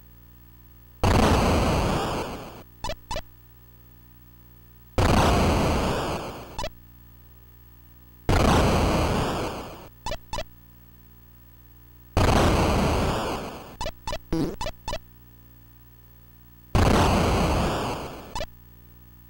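Video game bombs explode with loud electronic bursts.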